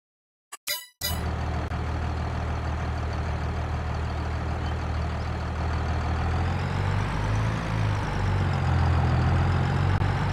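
A tractor engine rumbles steadily and revs up as it drives.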